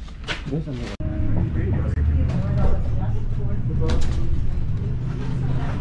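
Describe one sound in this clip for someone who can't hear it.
A trolley engine rumbles steadily.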